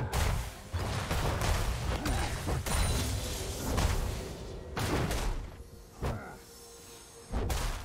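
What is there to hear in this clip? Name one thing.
Spell effects and sword hits clash and burst in a video game battle.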